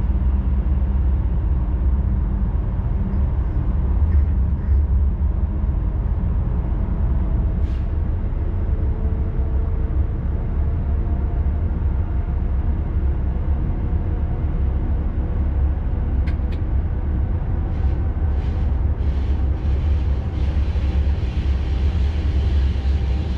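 Train wheels click and squeal on the rails.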